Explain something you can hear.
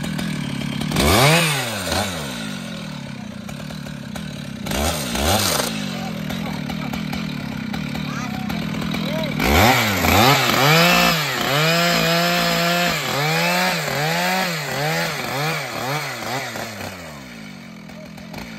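A chainsaw revs loudly in short bursts.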